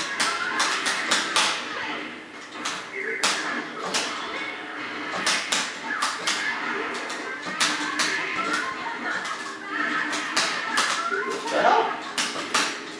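Punches and blasts from a fighting game hit again and again.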